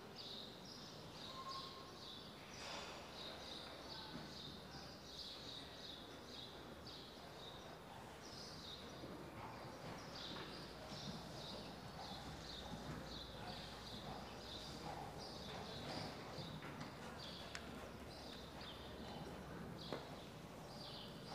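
A horse's hooves thud softly on sand in a large hall.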